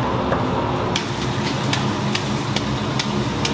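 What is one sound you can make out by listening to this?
Liquid sizzles and bubbles in a hot wok.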